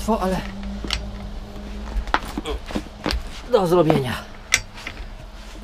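A metal jack clanks and knocks against metal.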